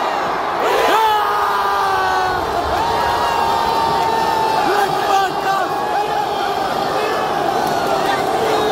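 A large stadium crowd sings a chant loudly in unison, nearby and all around.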